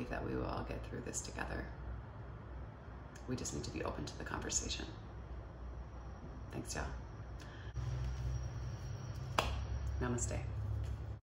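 A woman speaks close by, calmly and with feeling, in short phrases.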